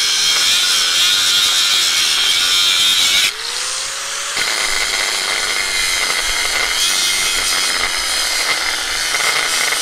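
An angle grinder whines loudly as it grinds into concrete block.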